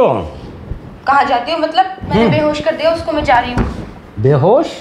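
A young woman speaks tensely nearby.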